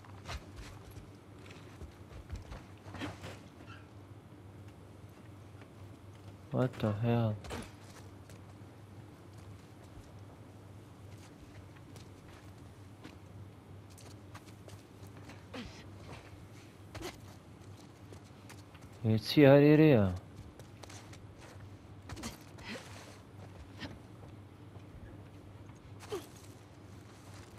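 Footsteps tread on hard ground.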